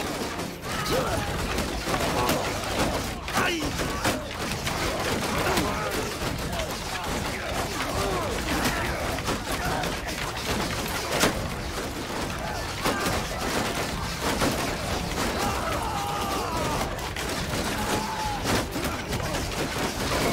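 Battle noise clatters and roars steadily.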